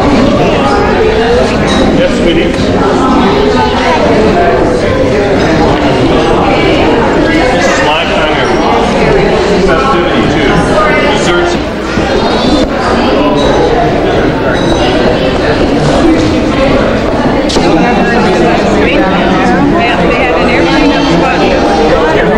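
A crowd of elderly men and women chatter loudly all around in a large room.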